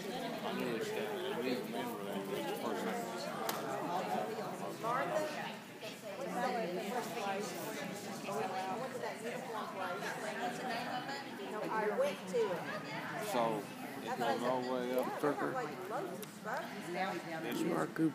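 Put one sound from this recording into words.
A woman talks with animation close by, in a large echoing hall.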